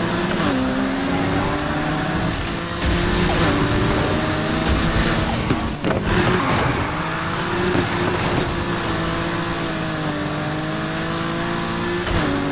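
A car engine roars loudly at high speed, its pitch rising and falling with gear shifts.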